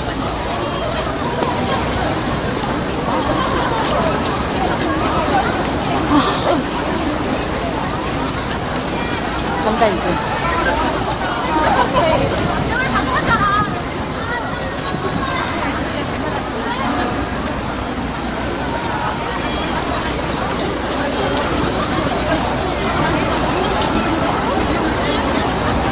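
A crowd of young women chatter and call out excitedly close by, outdoors.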